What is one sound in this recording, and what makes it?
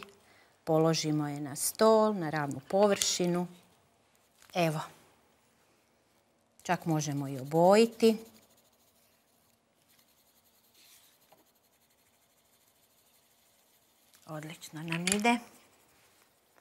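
A woman speaks calmly and cheerfully, close to a microphone.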